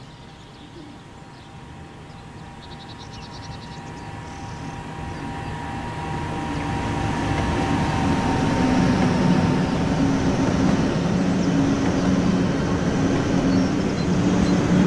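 A high-speed train approaches with a rising rumble and rushes past close by with a loud roar.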